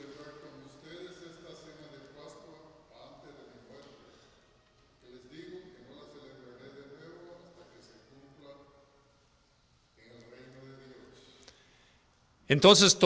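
An elderly man chants through a microphone in an echoing hall, pausing between phrases.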